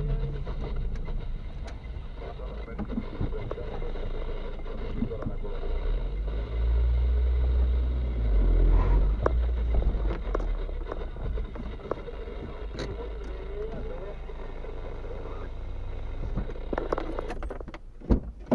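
A car engine rumbles, heard from inside the cabin as the car rolls slowly.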